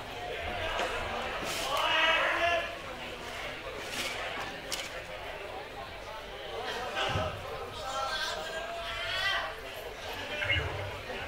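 A man speaks through a loudspeaker from the stage.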